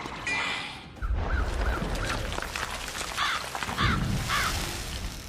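Magical flames whoosh and crackle.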